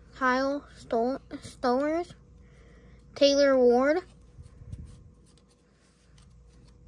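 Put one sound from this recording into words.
Trading cards rustle and flick as they are handled.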